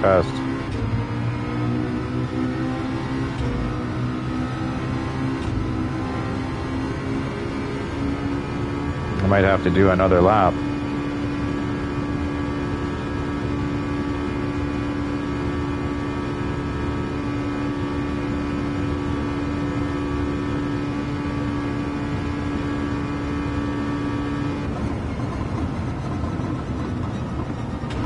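Tyres rumble over the road.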